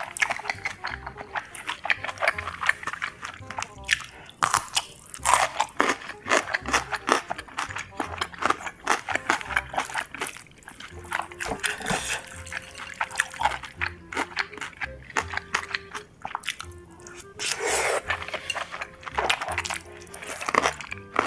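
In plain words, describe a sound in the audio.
A young woman chews food with loud, wet smacking sounds close to a microphone.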